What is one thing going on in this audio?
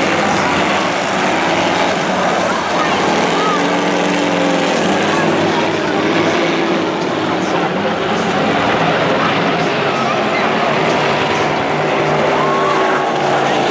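Race car engines roar around a dirt track.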